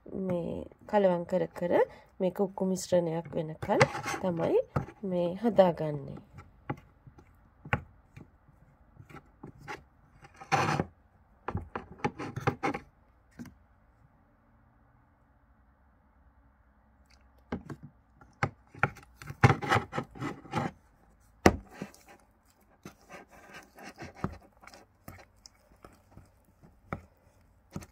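A metal spoon scrapes and clinks against a ceramic bowl.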